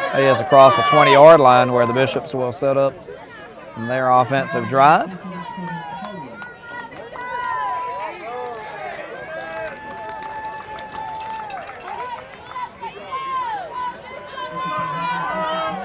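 A crowd of young men cheers and shouts from the sideline outdoors.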